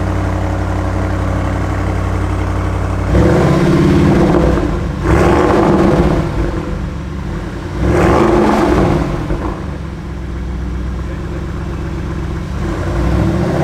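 A powerful car engine idles with a deep, steady rumble.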